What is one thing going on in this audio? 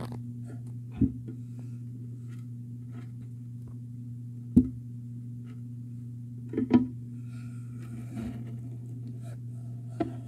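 A small plastic clip taps and knocks against glass.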